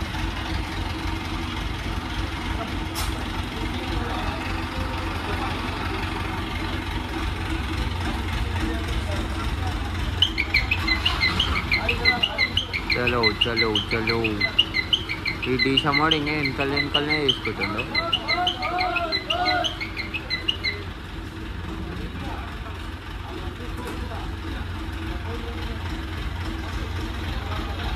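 A crane engine rumbles steadily nearby.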